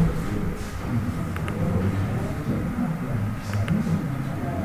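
A cue strikes a billiard ball and the balls click together sharply.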